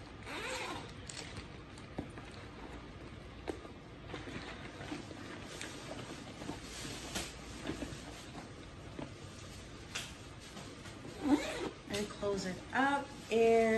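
A stiff handbag rustles and clicks as it is handled.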